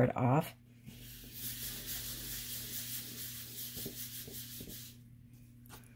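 Hands rub and smooth down paper with a soft brushing sound.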